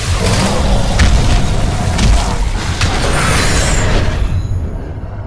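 Electricity crackles and buzzes in a loud zap.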